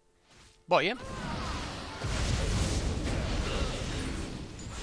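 Magic blasts crackle and boom in a fierce fight.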